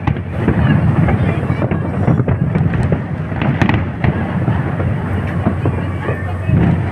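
Fireworks boom and rumble continuously in the distance.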